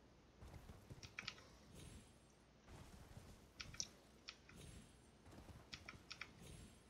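Light metal gear jingles with each step.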